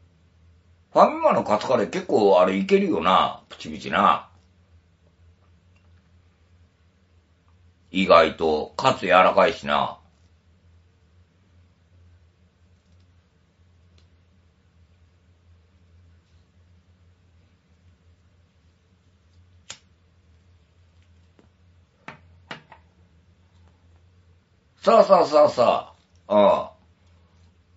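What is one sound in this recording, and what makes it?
An older man talks close to the microphone in short bursts.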